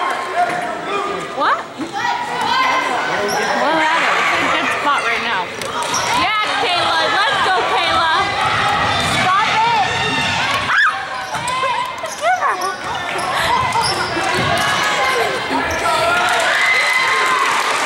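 Sneakers squeak sharply on a hardwood court again and again.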